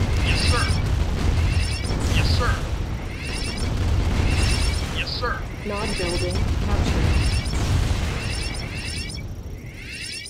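Machine guns rattle in quick, repeated bursts.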